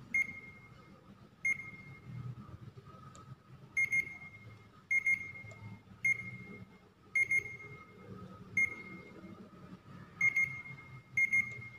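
An electronic meter beeps briefly each time a button is pressed.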